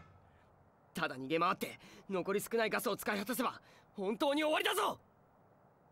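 A young man speaks anxiously and fast.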